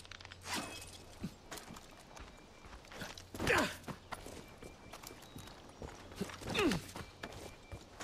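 Hands grab rock with scraping thuds.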